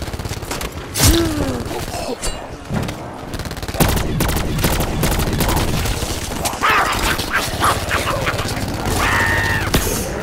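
A creature snarls and growls up close.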